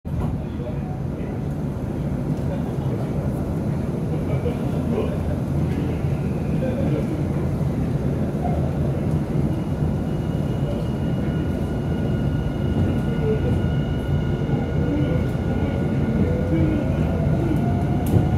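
A train rumbles steadily, heard from inside a carriage.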